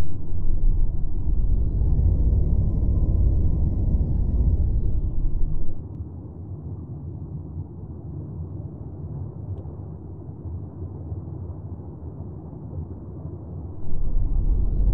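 A submarine's engine hums with a deep, steady rumble.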